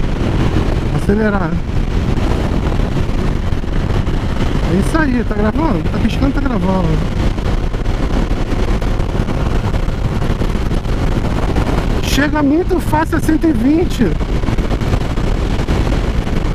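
A motorcycle engine hums steadily at cruising speed.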